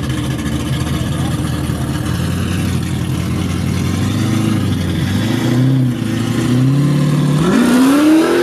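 A car engine idles with a deep, lumpy rumble.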